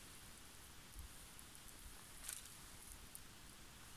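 Rubber boots step softly on moss.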